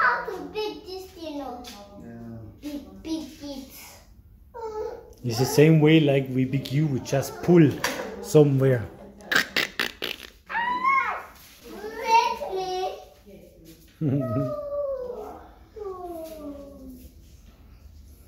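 A young boy talks close by, with animation.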